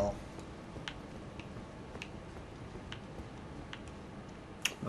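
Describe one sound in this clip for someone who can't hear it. Armoured footsteps clank steadily on a stone floor.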